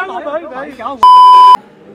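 A steady high test tone beeps.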